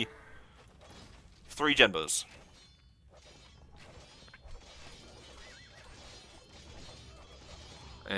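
Swords clash and clang faintly in a distant battle.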